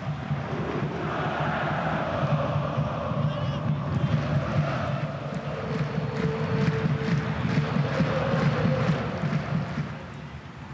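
A crowd roars louder as play moves forward.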